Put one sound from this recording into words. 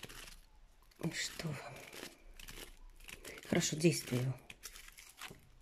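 Playing cards shuffle and riffle softly in a pair of hands.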